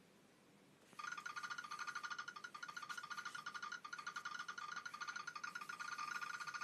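Short electronic game tones tick rapidly as puzzle pieces are dragged.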